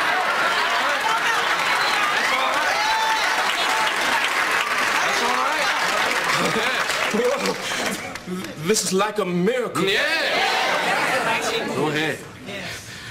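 A congregation of men and women laughs loudly.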